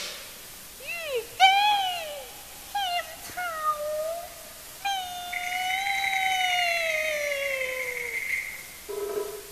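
A man sings in a high, gliding operatic voice.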